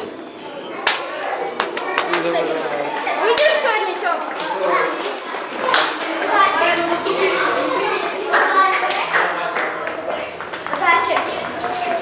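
Hands slap together in quick high fives.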